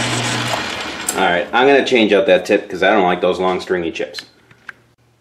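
A lathe spins down with a falling whine and rattles to a stop.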